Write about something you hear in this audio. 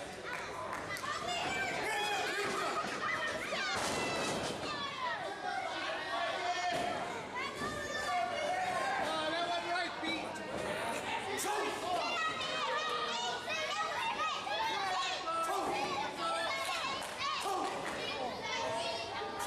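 A small crowd of men and women shouts and chatters in an echoing hall.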